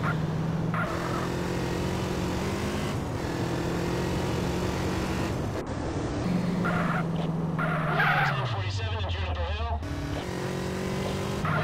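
A motorcycle engine hums steadily, rising and falling in pitch as the bike rides along.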